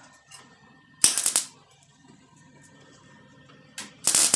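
A welding torch crackles and sizzles in short bursts.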